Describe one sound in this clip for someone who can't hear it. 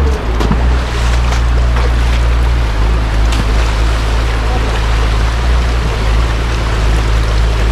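Boots splash through shallow water.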